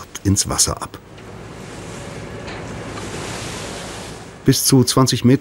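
Water splashes and rushes beside a boat.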